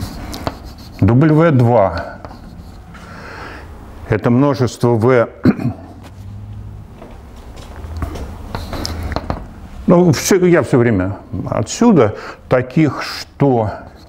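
An elderly man speaks calmly, lecturing.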